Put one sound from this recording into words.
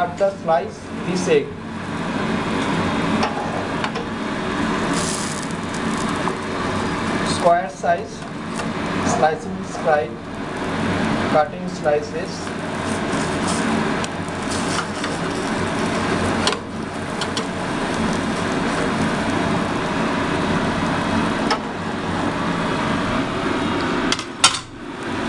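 An omelette sizzles steadily in a hot pan.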